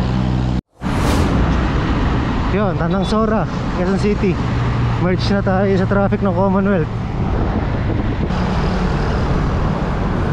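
Cars and motorbikes drive past on a busy road.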